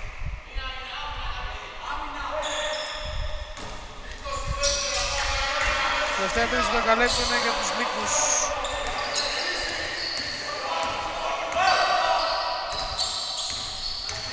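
A basketball bounces with dull thuds on a wooden floor in an echoing hall.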